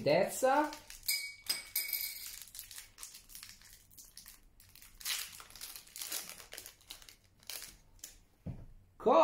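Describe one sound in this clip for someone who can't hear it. A foil card wrapper crinkles and tears.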